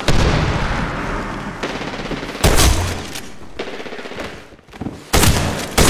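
Loud gunshots boom and echo down a brick tunnel.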